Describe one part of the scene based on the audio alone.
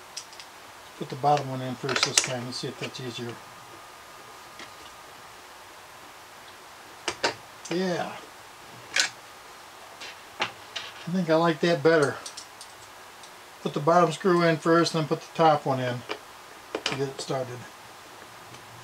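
A man speaks calmly close by, in short bursts.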